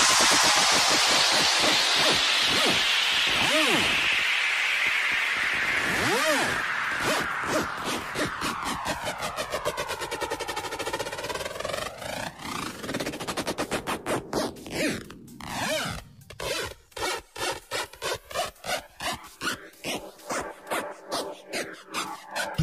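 A pulsing electronic beat thumps quickly.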